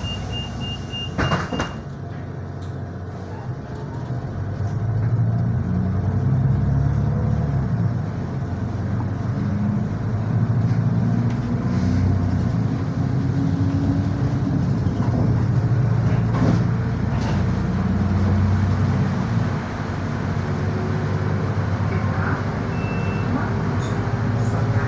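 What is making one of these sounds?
A bus engine hums low and rises and falls as the bus drives.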